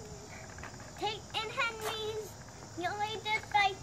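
A young child speaks excitedly nearby.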